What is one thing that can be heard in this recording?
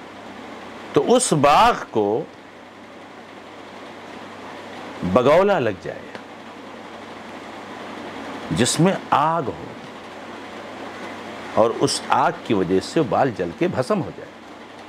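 A middle-aged man speaks close to a microphone in short, emphatic bursts with long pauses.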